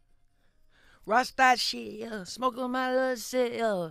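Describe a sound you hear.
A man sings loudly and with a strong voice, close by.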